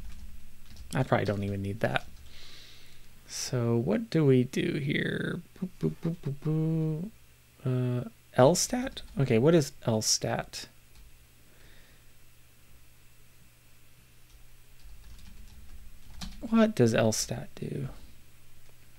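A middle-aged man talks calmly and close into a microphone.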